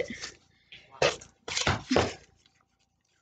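A paper coin wrapper tears open.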